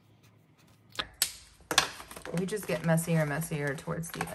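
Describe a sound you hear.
A plastic page flips over with a rustle.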